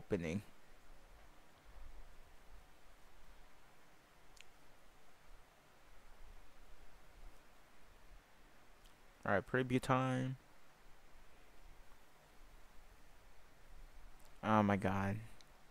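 A young man speaks briefly and calmly into a close microphone.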